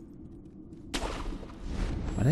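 A grappling rope whooshes through the air.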